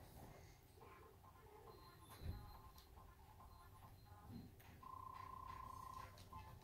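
Video game music and beeping effects play from a television speaker.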